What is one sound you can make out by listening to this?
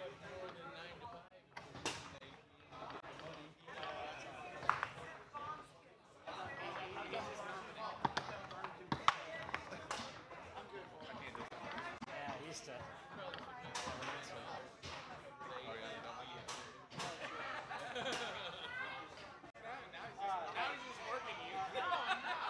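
Foosball rods slide and the ball clacks sharply against plastic players.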